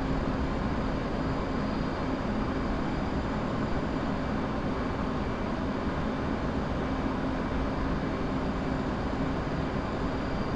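A jet engine roars steadily inside a cockpit.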